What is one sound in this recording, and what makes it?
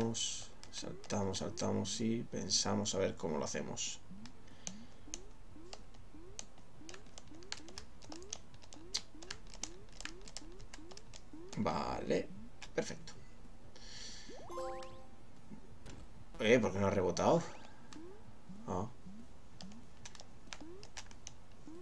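Short rising blips sound again and again as a small game character hops.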